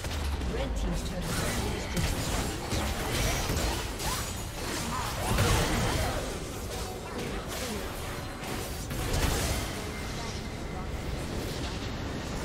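Video game battle effects clash, zap and crackle rapidly.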